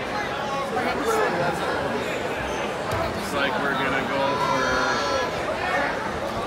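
A crowd chatters and shouts in a large echoing gym.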